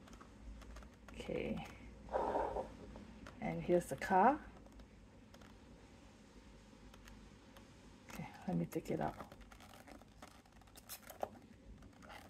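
Hands turn a plastic box, its packaging crinkling and clicking.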